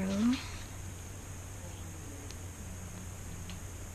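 A plastic cap clicks.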